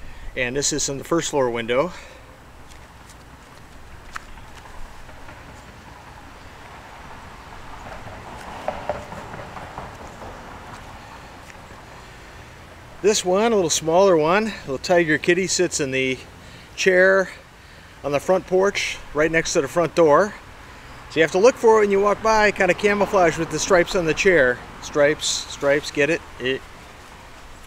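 A middle-aged man talks with animation close by, outdoors.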